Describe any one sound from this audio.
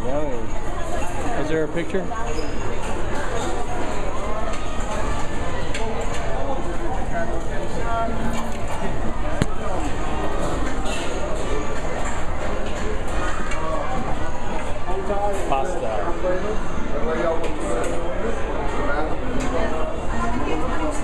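A crowd of men and women chatters nearby in a busy room.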